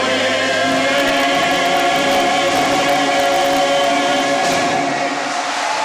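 A young woman sings through a microphone in a large echoing hall.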